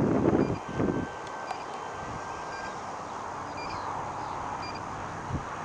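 A jet roars steadily overhead at a distance.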